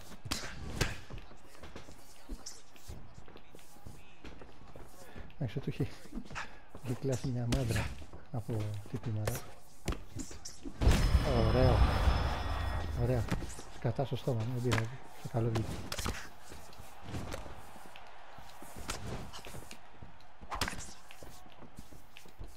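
Punches and kicks land with dull thuds, over and over.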